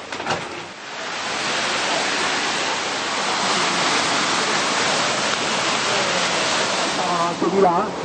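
Water rushes and splashes over rocks close by.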